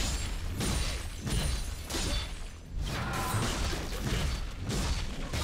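Magic spells crackle and whoosh in a fast fight.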